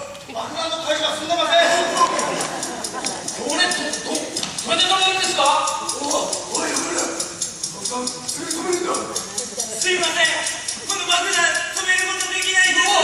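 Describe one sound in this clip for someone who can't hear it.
Young men shout and yell loudly together in a large echoing hall.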